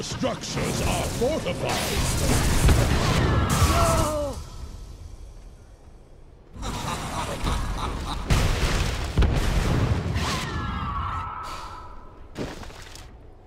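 Magic blasts and weapon hits crash loudly in a fast game battle.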